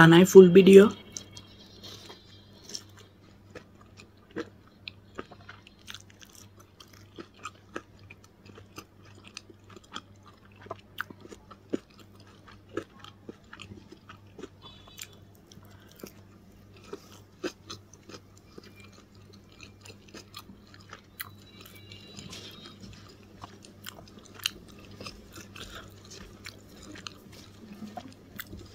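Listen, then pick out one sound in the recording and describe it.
A young woman chews noisily with smacking lips close by.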